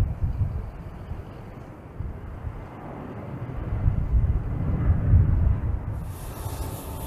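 A jet plane's engines roar loudly as it takes off and climbs away.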